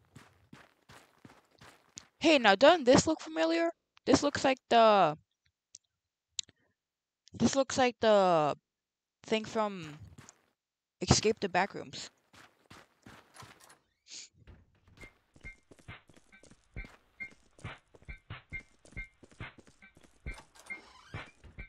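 Footsteps walk steadily across a floor.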